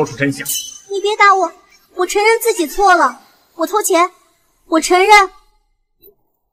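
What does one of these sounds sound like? A young girl speaks in a high, clear voice close by.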